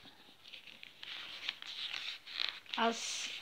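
Glossy paper pages rustle as they are turned.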